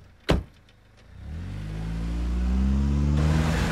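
A car engine starts up and revs steadily louder.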